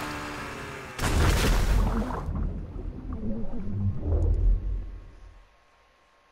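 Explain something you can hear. A body plunges into water with a heavy splash.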